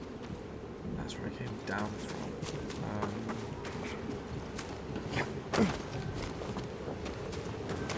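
Footsteps thud on stone and grass.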